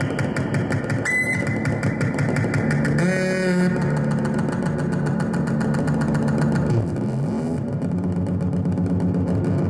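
Electronic synthesizer music plays loudly, with a fast ticking beat and low droning, sliding tones.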